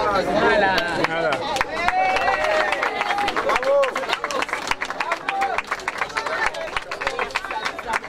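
A crowd claps in applause.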